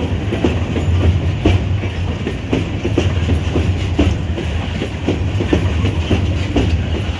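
Train wheels clack rhythmically over rail joints.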